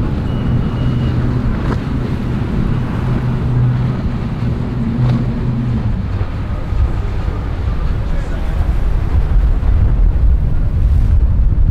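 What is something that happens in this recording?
Spray hisses and splashes along a speedboat's hull.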